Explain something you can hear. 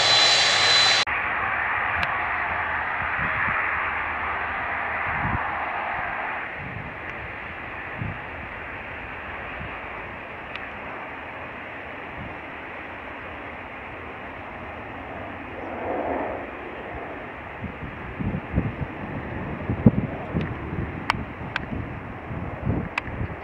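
A jet airliner's engines rumble in the distance as it approaches to land.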